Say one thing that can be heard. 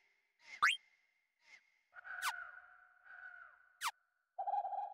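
Short electronic menu blips and chimes sound from a video game.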